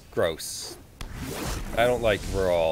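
A magical shimmering whoosh sounds.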